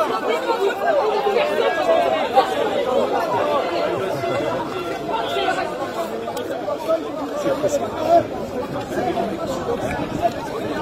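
A crowd of men and women talks all around outdoors.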